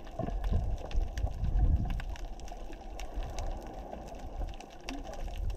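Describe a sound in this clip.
Water rumbles and sloshes, heard muffled from underwater.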